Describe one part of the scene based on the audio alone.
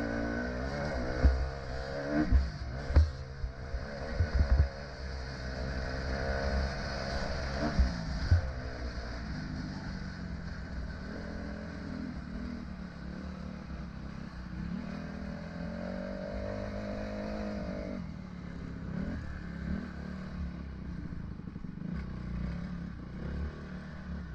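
A dirt bike engine revs up and down.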